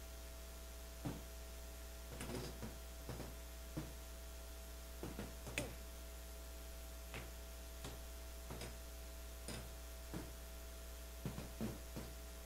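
Metal and glass vessels clink and knock softly in an echoing hall.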